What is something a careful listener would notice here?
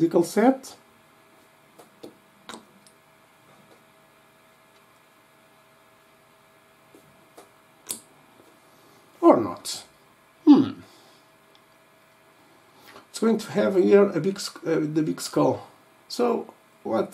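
A man talks calmly and close to a microphone, with pauses.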